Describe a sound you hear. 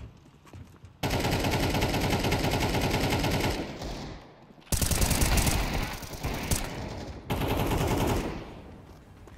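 An automatic rifle fires in short bursts.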